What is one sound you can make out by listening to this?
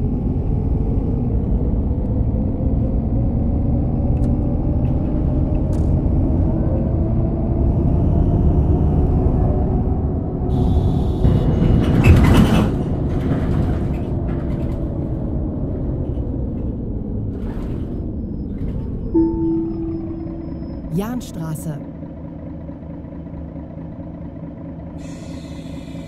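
A bus engine hums and drones steadily as the bus drives along, slowing to a stop.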